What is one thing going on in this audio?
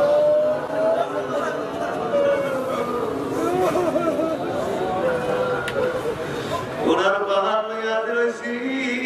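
A man chants melodically into a microphone, heard through loudspeakers.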